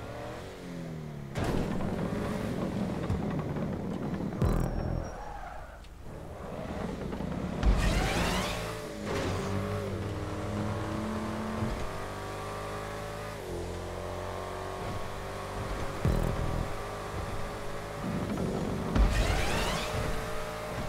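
A car engine revs and hums steadily, rising and falling in pitch.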